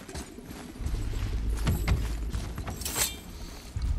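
Heavy footsteps thud on rocky ground.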